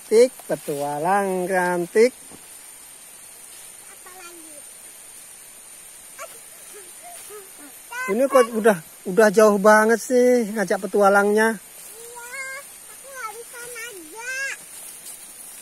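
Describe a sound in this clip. A young child talks nearby.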